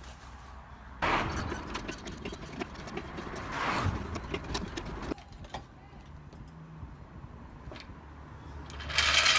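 Metal tools clink and scrape against a car's underside.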